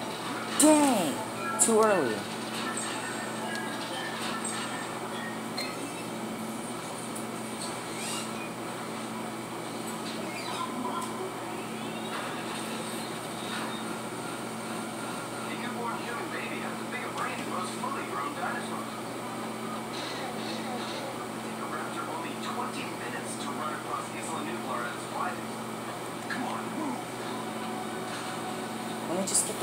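Video game music and sound effects play from a television speaker.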